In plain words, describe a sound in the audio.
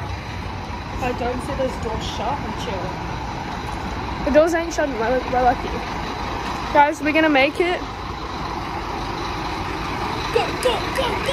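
A young woman talks close to the microphone in a casual, animated way.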